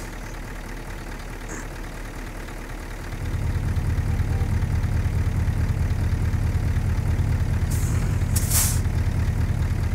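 A truck engine rumbles steadily and grows louder as it accelerates.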